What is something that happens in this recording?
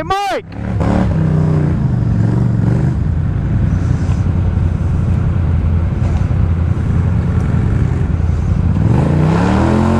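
ATV tyres spin and churn through thick mud.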